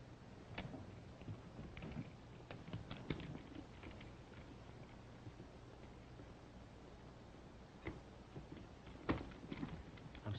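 Metal instruments clink as a man handles them.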